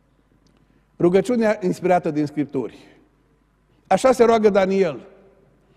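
A middle-aged man speaks with emphasis through a microphone.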